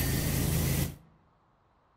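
A pressure washer sprays water with a loud, steady hiss, then stops abruptly.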